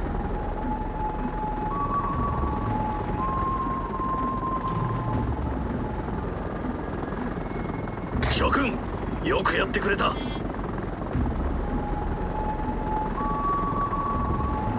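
Propeller plane engines drone steadily in a group overhead.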